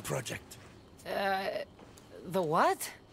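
A young woman answers hesitantly, close by.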